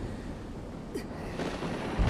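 Lava rumbles and crackles as it bursts.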